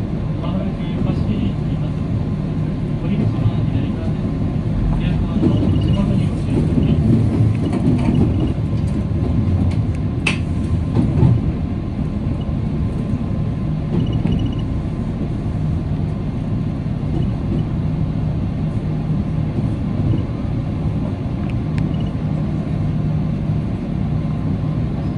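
An electric commuter train rumbles along the track, heard from inside the rear car.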